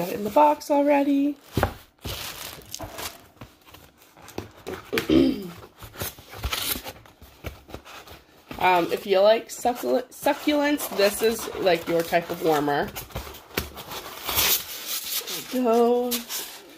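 Paper rustles and crinkles as it is handled.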